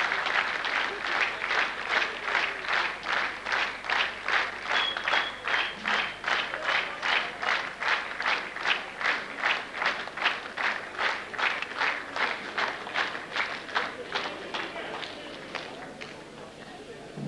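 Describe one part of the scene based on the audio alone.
A large audience claps in unison to a steady beat, slowly fading.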